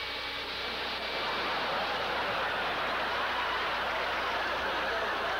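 Water hisses and slurps as a vacuum nozzle sucks it up, growing louder.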